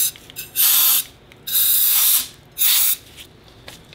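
Compressed air hisses from an air nozzle in short, loud bursts.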